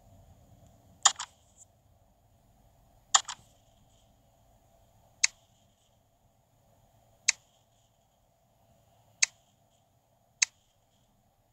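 Menu buttons in a game give short sharp clicks.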